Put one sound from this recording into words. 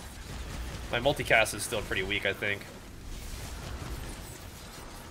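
Game sound effects clash and whoosh.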